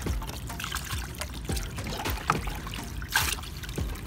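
Water pours from a bucket into water.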